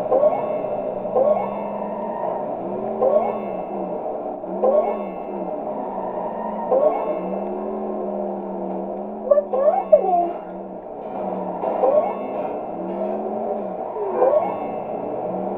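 Sparkling chimes ring out as items are collected.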